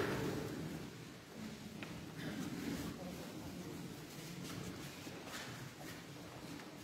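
A men's choir sings softly in a large echoing hall.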